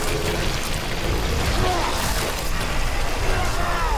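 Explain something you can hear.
A creature shrieks as it is hit.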